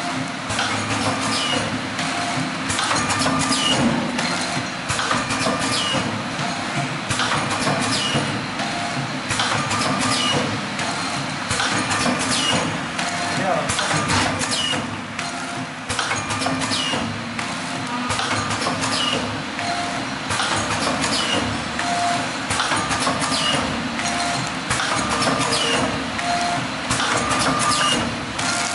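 A packaging machine clicks and clacks in a regular rhythm.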